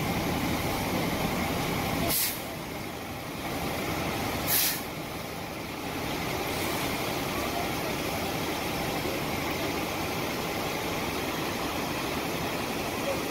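Fire engines idle with a steady low rumble outdoors.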